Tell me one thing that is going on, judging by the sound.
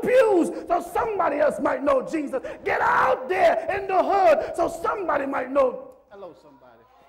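A congregation sings loudly.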